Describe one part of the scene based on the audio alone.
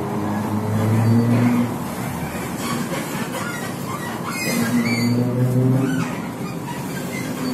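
Traffic rushes past outside.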